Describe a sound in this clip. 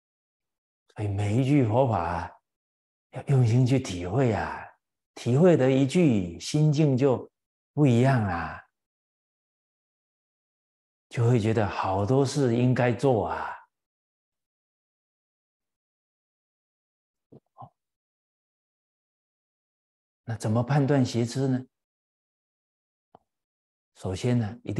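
An elderly man speaks calmly into a close microphone, in phrases with pauses.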